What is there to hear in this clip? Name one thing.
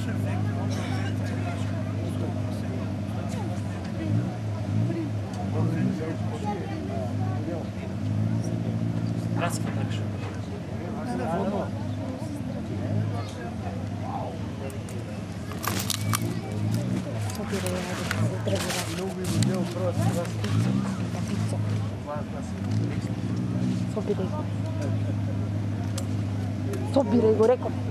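A large crowd of spectators murmurs and chatters outdoors.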